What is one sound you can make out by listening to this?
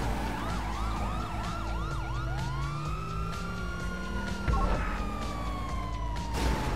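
A police siren yelps rapidly, then switches to a long wail.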